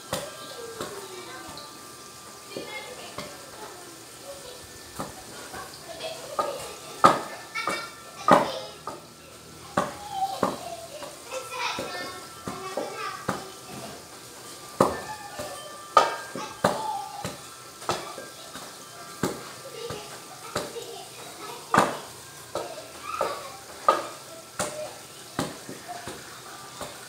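A pestle pounds food in a metal pot with dull, irregular thuds.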